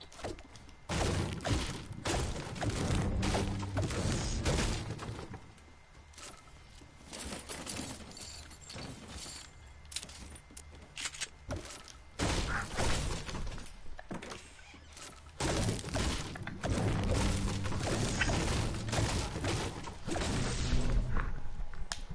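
A pickaxe chops into wood with repeated hard knocks.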